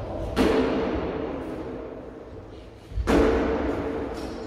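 Metal blades clash loudly and ring out in a large echoing hall.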